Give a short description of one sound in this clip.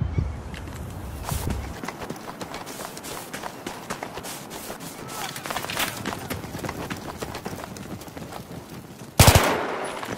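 Footsteps patter quickly over rough ground.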